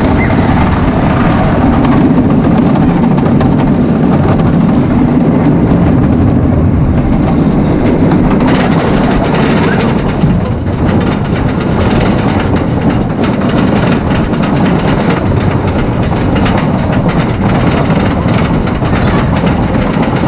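A roller coaster car rumbles and clatters along wooden tracks.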